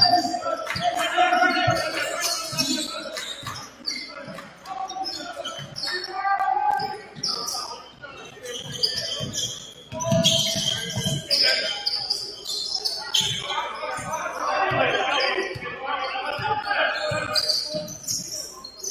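Young players shout and call out to each other.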